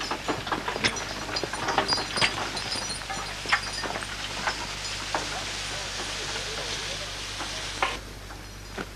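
Spruce branches scrape and rustle as they are dragged over the forest floor.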